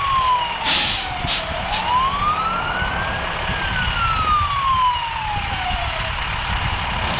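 A fire truck siren wails, rising and falling, then stops.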